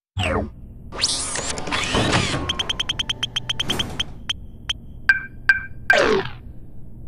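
A lottery machine whirs and ticks rapidly as it spins.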